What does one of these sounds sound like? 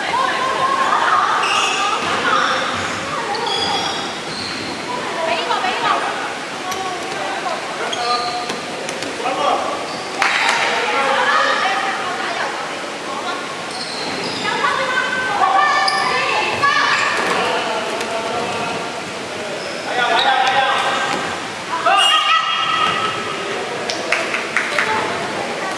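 Children shout and call out throughout in a large echoing hall.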